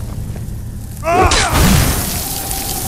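A spell hisses with an icy rush.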